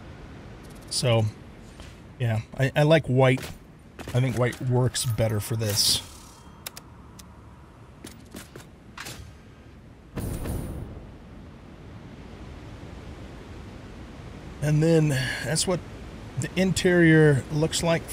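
An older man talks casually into a close microphone.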